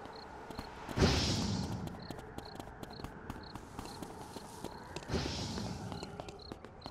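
Game weapon blasts whoosh and rumble in short bursts.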